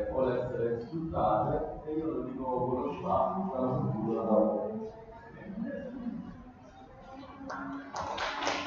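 A man speaks into a microphone with animation, heard through loudspeakers.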